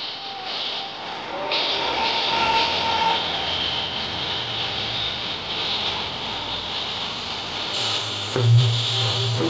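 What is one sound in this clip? Music plays loudly over loudspeakers.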